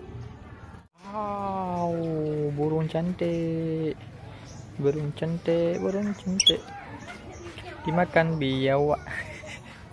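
A parrot squawks and chatters loudly close by.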